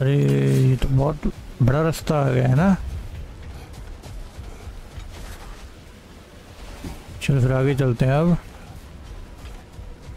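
Footsteps crunch through snow at a quick pace.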